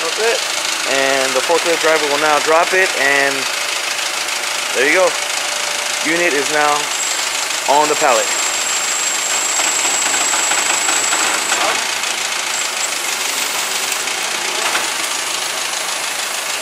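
A forklift engine idles steadily nearby.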